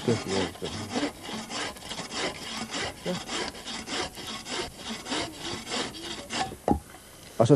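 A bow saw cuts back and forth through wood in quick, steady strokes.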